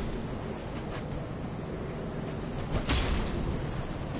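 Metal swords clash and clang.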